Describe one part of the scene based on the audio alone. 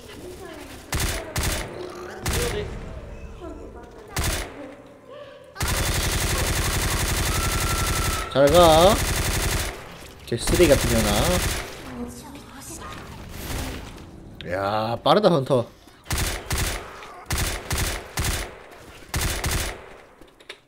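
A rifle fires quick bursts of loud shots.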